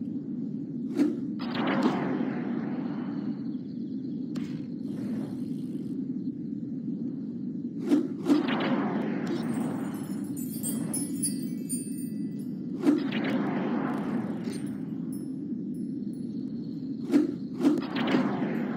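A bike lands hard with a thud after a jump.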